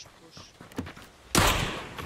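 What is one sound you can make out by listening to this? A wooden door swings open with a thud.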